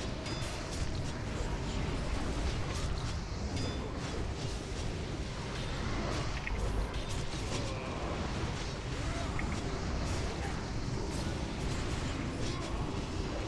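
Spell effects crackle and whoosh during a fight.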